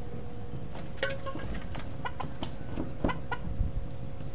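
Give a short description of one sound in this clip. Wooden slats knock and rattle close by.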